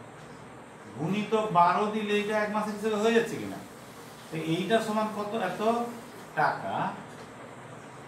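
A man speaks calmly and explains, close by.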